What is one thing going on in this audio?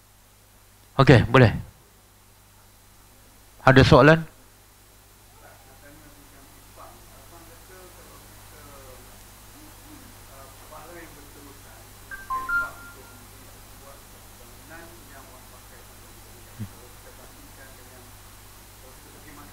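A middle-aged man lectures calmly through a headset microphone.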